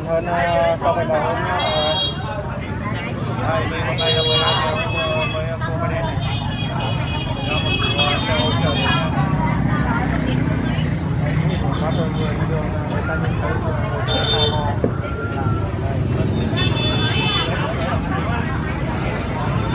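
Several people talk at once in a busy crowd outdoors.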